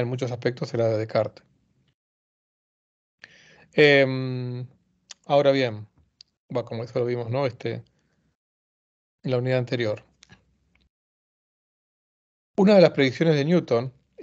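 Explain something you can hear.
A middle-aged man speaks calmly into a microphone over an online call, in short phrases with pauses.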